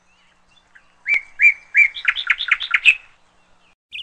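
A young eagle calls in a quick series of sharp, high notes.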